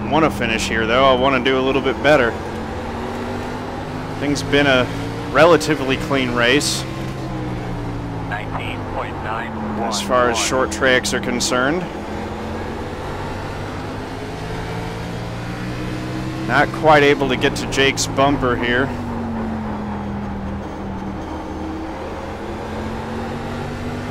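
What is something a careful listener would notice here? A race car engine drones steadily, its pitch rising and falling.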